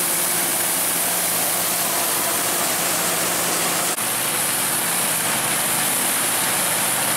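A harvesting machine rattles and clatters steadily.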